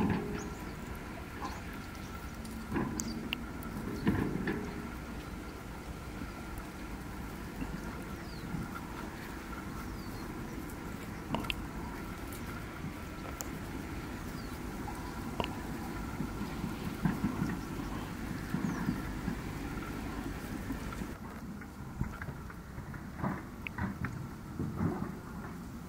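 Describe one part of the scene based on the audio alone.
A small bird chirps softly.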